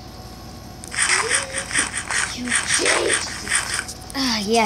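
Crunchy chewing sounds repeat quickly.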